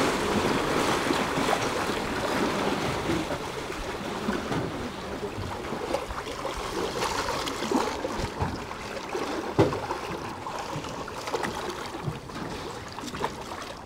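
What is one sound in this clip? Water churns and splashes loudly in a boat's wake, then slowly quietens.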